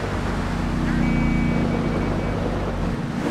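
Car tyres screech in a skid.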